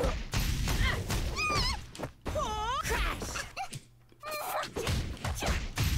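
Blows land with sharp, rapid smacks in a fight.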